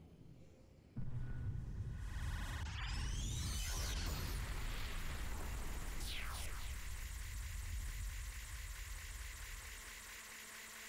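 A hovering spaceship fires beams with a deep, roaring rumble.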